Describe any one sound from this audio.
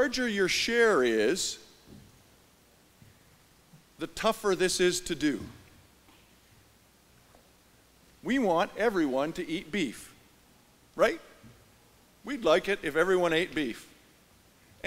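A middle-aged man speaks calmly into a microphone in a large echoing hall, with pauses between phrases.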